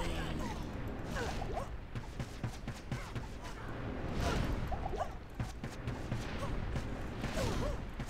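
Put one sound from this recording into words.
Fire spells whoosh and crackle in bursts.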